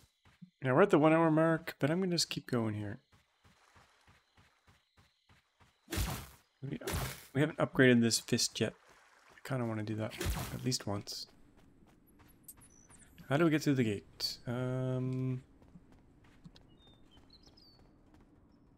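Footsteps patter over dry ground.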